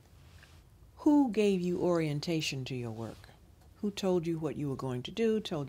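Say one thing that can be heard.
An older woman speaks calmly and clearly, close to a microphone.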